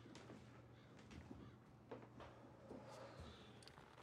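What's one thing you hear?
A man sets objects down on a counter with light knocks.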